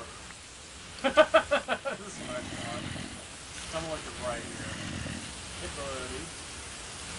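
A zombie groans low nearby.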